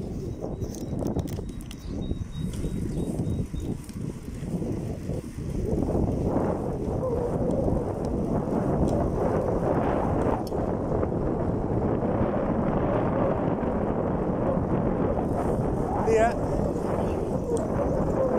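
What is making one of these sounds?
Wind rumbles loudly against a microphone outdoors, growing stronger partway through.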